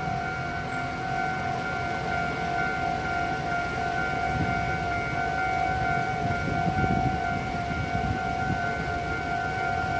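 A railway crossing bell rings steadily with a fast, even beat.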